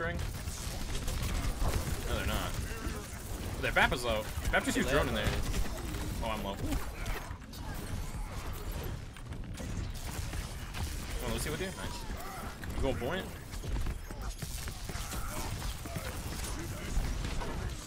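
Electric beams crackle and buzz from a game weapon.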